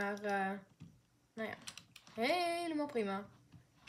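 A toy dart blaster fires with short popping shots.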